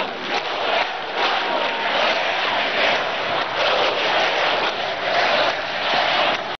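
A huge crowd cheers and chants loudly in a large open space.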